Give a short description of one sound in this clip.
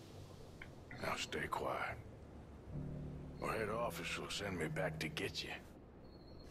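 A man with a gruff voice speaks calmly and firmly.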